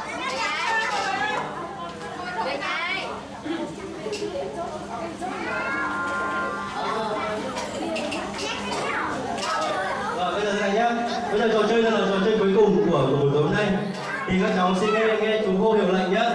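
Young children chatter and shout nearby.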